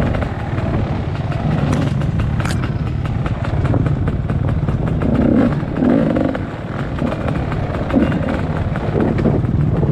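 A dirt bike engine rumbles steadily up close.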